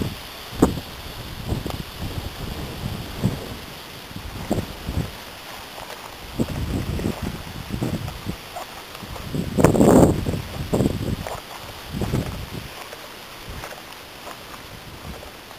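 Wind gusts outdoors, buffeting and rumbling in bursts.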